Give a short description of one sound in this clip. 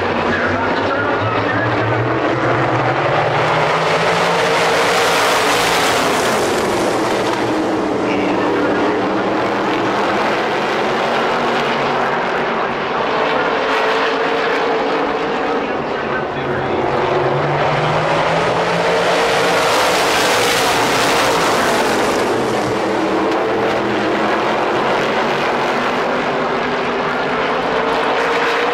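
Supermodified race cars roar around an oval track at full throttle.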